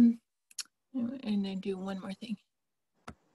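A second woman answers over an online call.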